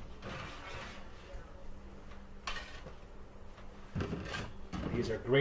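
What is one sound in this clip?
A metal baking tray clatters.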